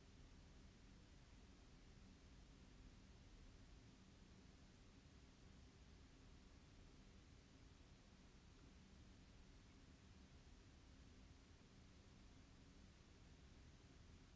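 Something rustles softly in a young woman's hands.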